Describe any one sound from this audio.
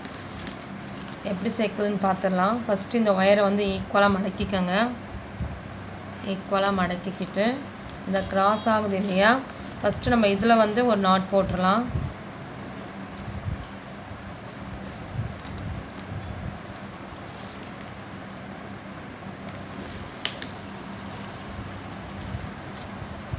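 Plastic strands rustle and rub softly as hands weave them.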